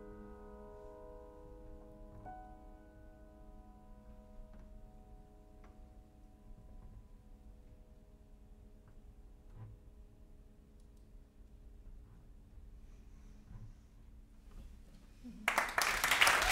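Soft piano notes ring out and slowly fade.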